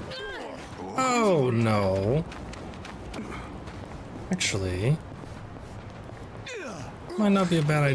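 A young man speaks animatedly and close into a microphone, his voice swooping up and down.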